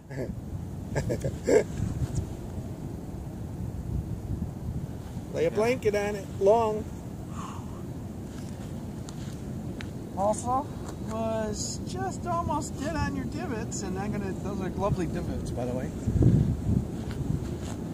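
Wind rumbles across the microphone.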